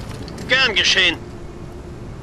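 A man speaks briefly in a low, distorted voice.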